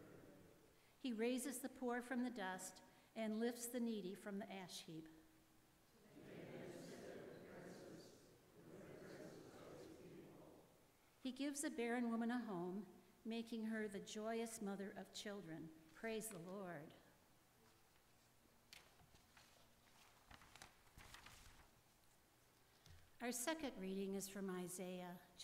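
An elderly woman reads aloud through a microphone in a large echoing hall.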